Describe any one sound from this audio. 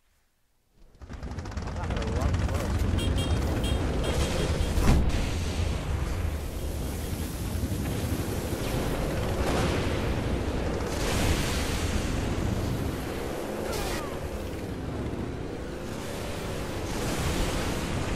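Game vehicle engines roar steadily.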